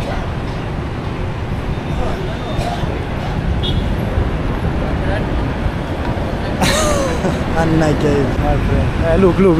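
A young man talks and laughs close to the microphone.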